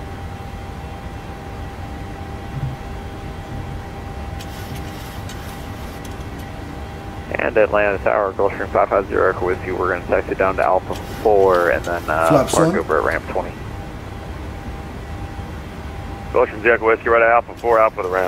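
A steady aircraft engine hum drones in the background.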